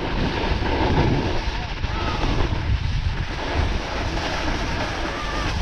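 Wind rushes loudly past, close by.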